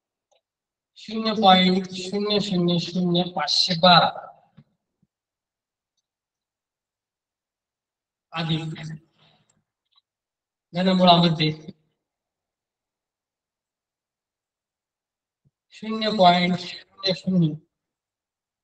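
A young man speaks calmly and clearly, close by, in short bursts with pauses.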